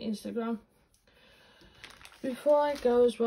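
A plastic bag rustles as it is picked up.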